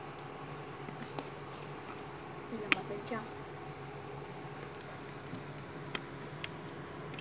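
A plastic sandal taps and clicks softly as it is slipped onto a foot.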